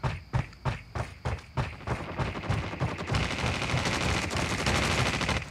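Footsteps thud quickly and steadily on a hard floor.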